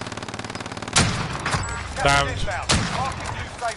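A sniper rifle fires a loud, sharp shot.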